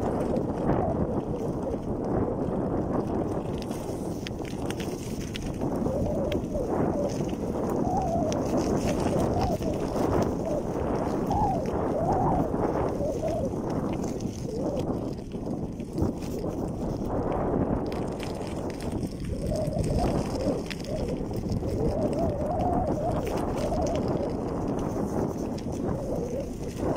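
Bicycle tyres roll over gravel.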